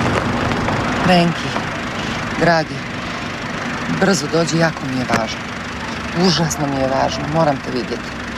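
A young woman talks on a phone in a car.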